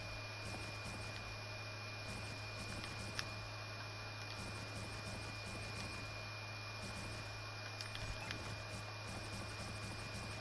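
Building pieces clack into place in a video game.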